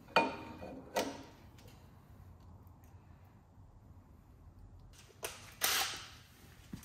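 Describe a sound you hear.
Metal parts clink and clatter as they are fitted together.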